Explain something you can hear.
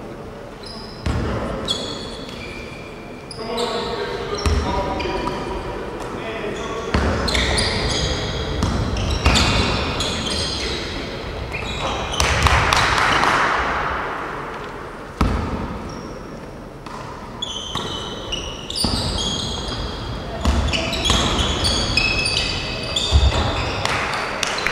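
Players shout to each other in a large echoing gym.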